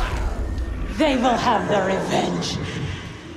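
A woman speaks in a low, menacing voice.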